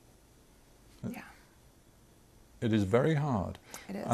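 A young woman speaks calmly and softly close to a microphone.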